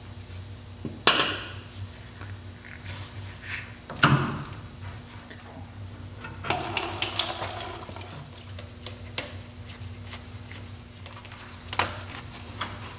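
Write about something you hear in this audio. Metal tools clink and knock against metal parts.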